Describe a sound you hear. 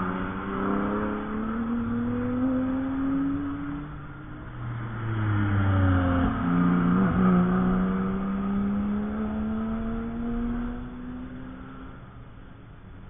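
A race car engine roars past at speed, its pitch rising and then dropping away.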